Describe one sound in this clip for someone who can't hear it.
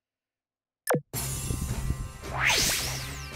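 A whooshing game sound rises at the end.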